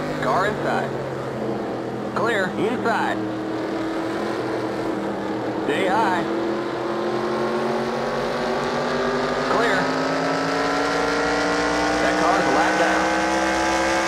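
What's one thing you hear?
Other race cars whine past nearby.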